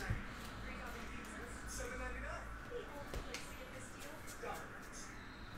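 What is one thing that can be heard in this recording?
Trading cards rustle and click as hands shuffle them.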